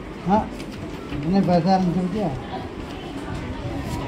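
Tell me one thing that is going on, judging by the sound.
Paper rustles as a page is turned.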